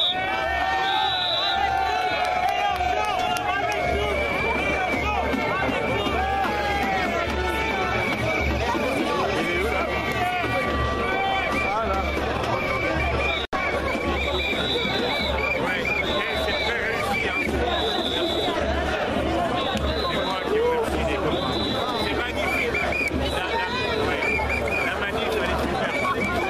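A large crowd chatters and shouts loudly outdoors.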